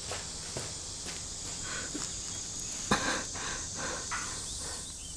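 A young woman runs off over dirt.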